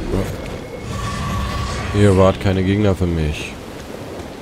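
Flames burst with a crackling roar.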